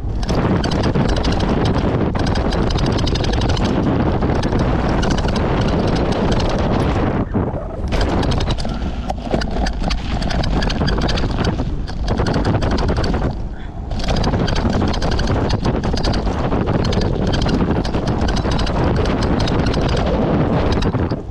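Wind buffets loudly past the rider.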